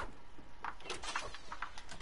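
A wooden door creaks open in a game.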